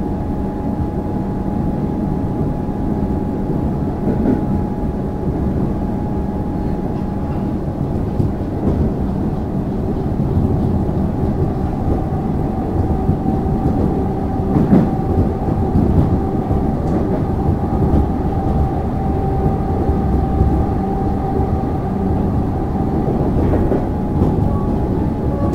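A train's motor hums with a steady tone.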